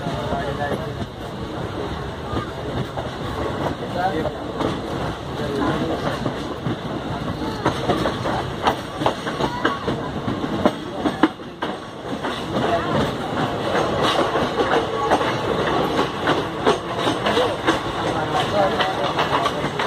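A train rumbles along the tracks with a steady roar.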